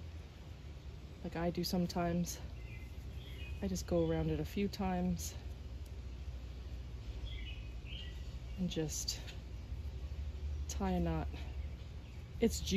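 Leaves rustle softly as twine is tied around a plant stem.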